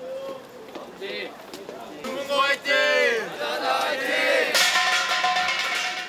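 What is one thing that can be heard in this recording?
A crowd of young people cheers and shouts outdoors.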